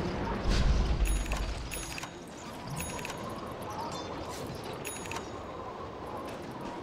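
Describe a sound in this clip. Magic spells whoosh and crackle in a fantasy battle game.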